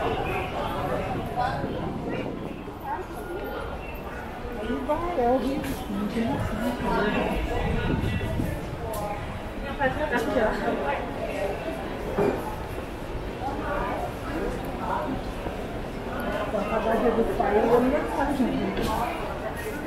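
Men and women in a crowd chatter nearby and in the distance.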